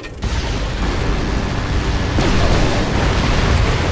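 Rotary autocannons fire in rapid bursts.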